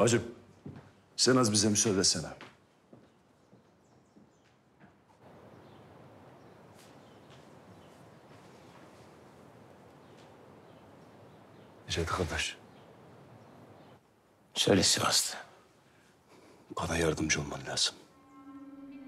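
A man speaks in a low, tense voice close by.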